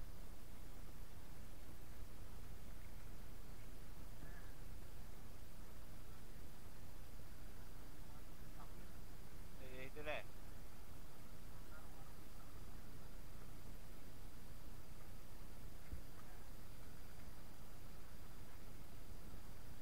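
Wind rumbles steadily across the microphone outdoors.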